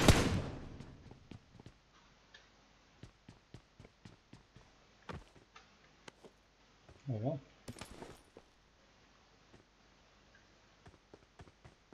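Footsteps patter steadily on a hard floor.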